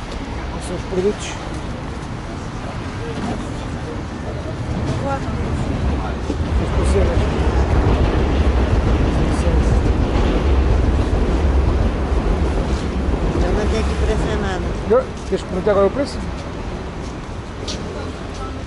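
Outdoors, a busy street murmurs with traffic.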